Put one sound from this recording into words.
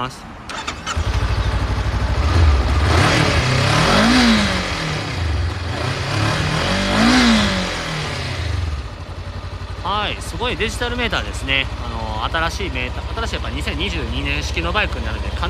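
A motorcycle engine starts and idles with a steady rumble.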